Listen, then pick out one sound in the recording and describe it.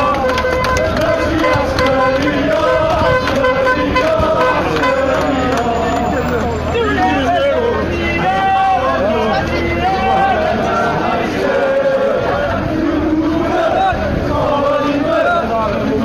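A large crowd of men chants loudly in unison outdoors.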